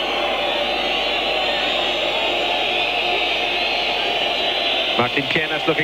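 A large stadium crowd roars steadily outdoors.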